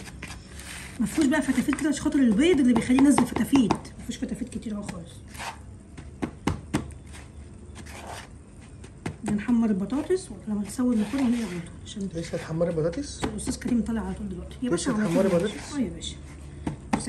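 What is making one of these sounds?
A woman speaks calmly close by.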